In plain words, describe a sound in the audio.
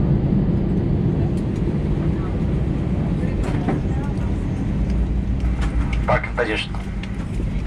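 A jet engine hums steadily nearby.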